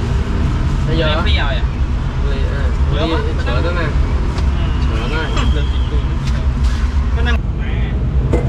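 A cleaver chops sharply on a wooden block.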